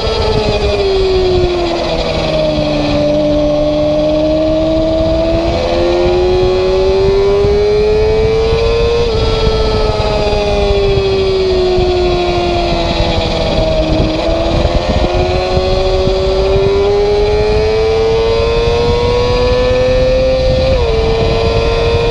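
A motorcycle engine roars loudly up close, rising and falling in pitch through the gears.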